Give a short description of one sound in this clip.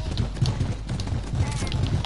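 Video game building pieces snap into place with quick clicks.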